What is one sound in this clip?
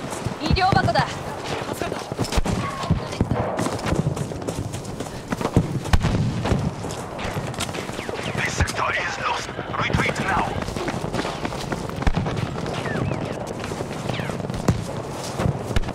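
Footsteps crunch quickly over rough ground.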